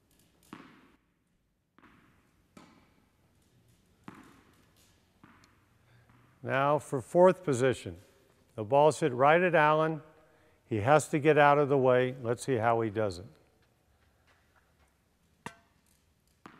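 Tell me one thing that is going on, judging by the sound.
A tennis racket hits a ball with a light pop.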